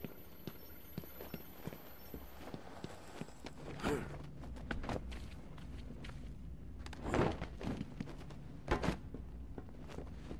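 Heavy footsteps thud steadily on a hard floor.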